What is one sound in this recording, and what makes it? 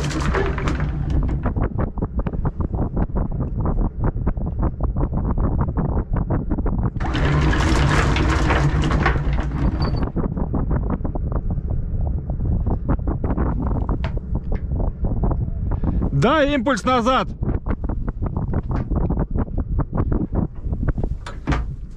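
An anchor chain rattles link by link through a windlass.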